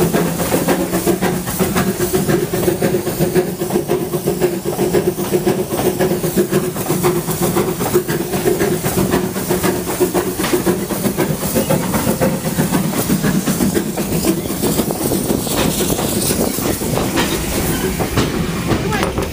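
Wind buffets loudly past the listener.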